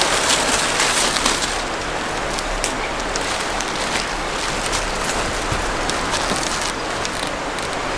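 Plastic sheeting rustles and crinkles under a heavy slab of meat being moved.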